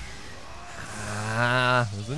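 A monster lets out a loud, rising roar.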